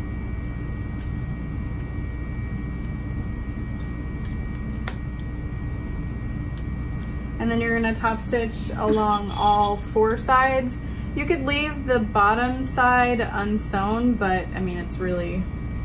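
A small plastic part clicks in someone's hands.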